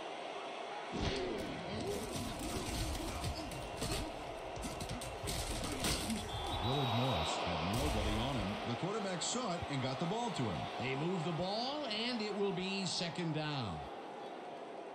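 A stadium crowd cheers and roars.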